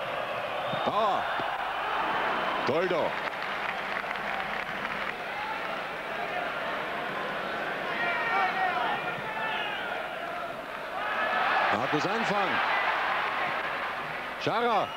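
A large stadium crowd roars and cheers outdoors.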